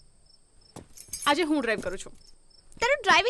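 Another young woman answers calmly close by.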